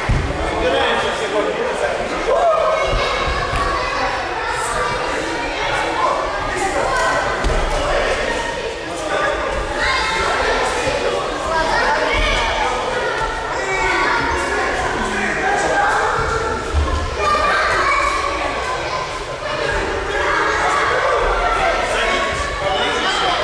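Many children chatter and call out in a large echoing hall.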